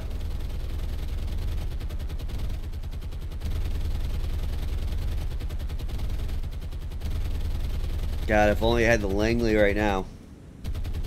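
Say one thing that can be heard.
A ship's engine rumbles low and steady.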